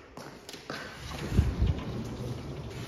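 A sliding door rumbles along its track.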